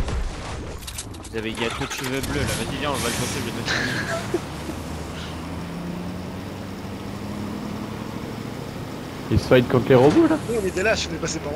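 A heavy truck engine rumbles steadily as the truck drives.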